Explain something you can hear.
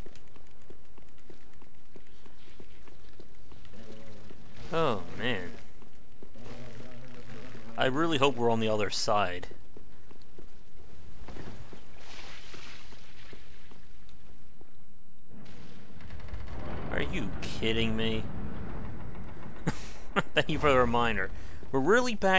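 Armoured footsteps clatter on stone steps.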